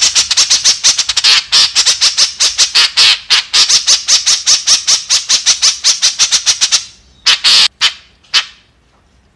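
A bird calls close by in a rapid, harsh, chattering series that slows and stops.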